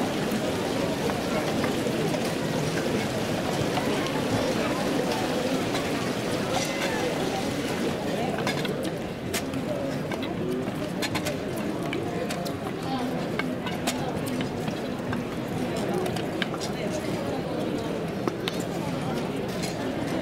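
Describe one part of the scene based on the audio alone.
Footsteps shuffle slowly on stone paving.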